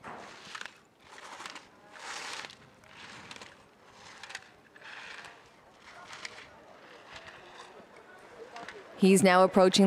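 Skis scrape and hiss across hard snow in rhythmic turns.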